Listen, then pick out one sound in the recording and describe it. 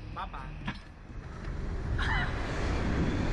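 A young man yells with excitement.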